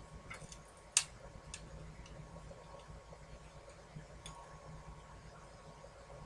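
Tweezers click as small pieces are set down on a hard tabletop.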